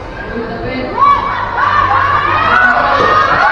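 Young players shout to each other across an open court.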